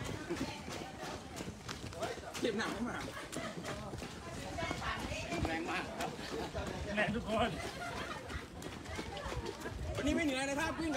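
Many running shoes patter steadily on a paved path.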